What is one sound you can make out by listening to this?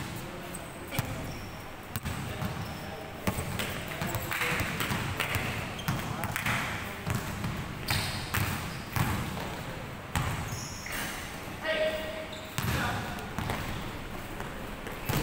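A basketball bounces on a hardwood floor, echoing in a large hall.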